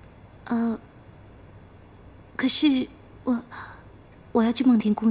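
A young woman speaks on the phone in short, calm phrases, close by.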